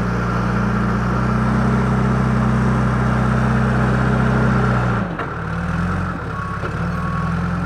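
A loader bucket scrapes and pushes dirt.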